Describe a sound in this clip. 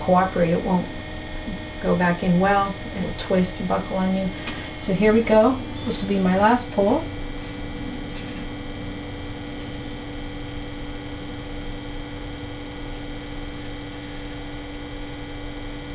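A potter's wheel hums steadily.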